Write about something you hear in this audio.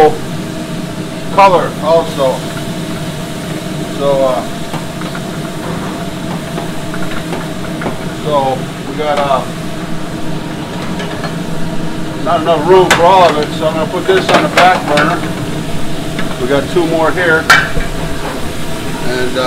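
A gas burner roars steadily.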